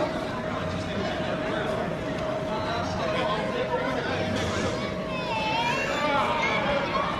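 A crowd of children and adults chatters throughout in a busy room.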